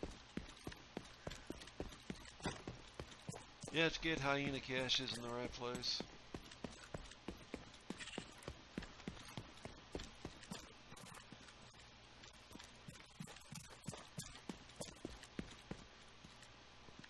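Footsteps tread steadily on hard ground.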